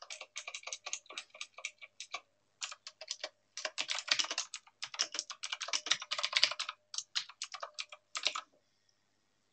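Keys on a keyboard click rapidly.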